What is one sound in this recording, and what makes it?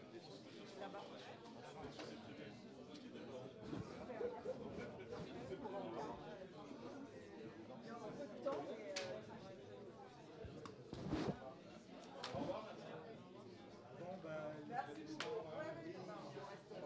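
An elderly man speaks calmly.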